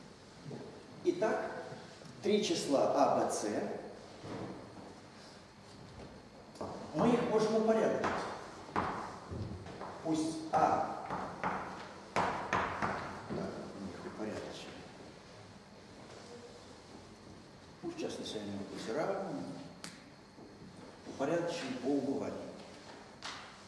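An older man speaks calmly, lecturing in a room with some echo.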